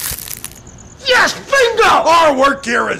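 An elderly man shouts with animation.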